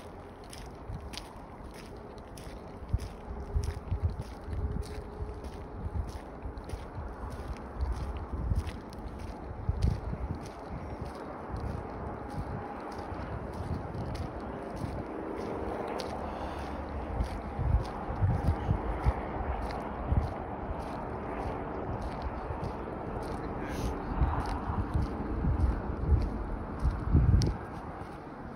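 Footsteps scuff and thud on a paved road outdoors.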